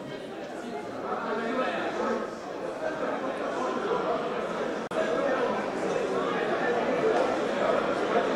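Many men and women talk over each other in a loud murmur.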